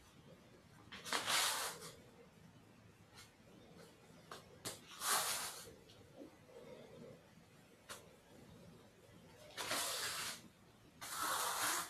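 Feet shuffle and slide softly on a mat.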